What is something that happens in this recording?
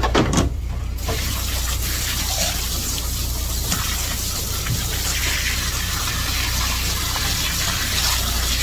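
A jet of water from a hose nozzle sprays onto a cutting board.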